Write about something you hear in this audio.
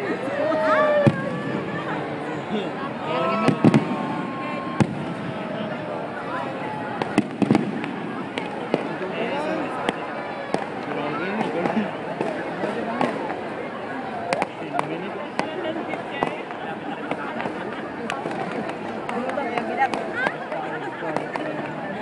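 Fireworks pop and crackle in the sky.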